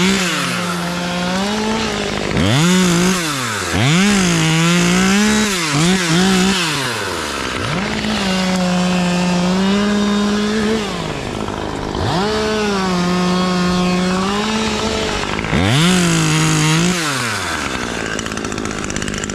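A chainsaw engine revs up and down in bursts close by.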